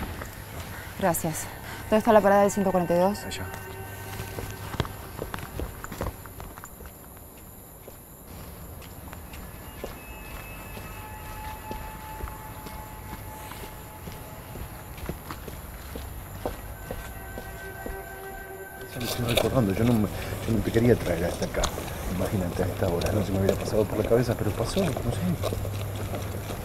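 A woman speaks quietly and tensely close by.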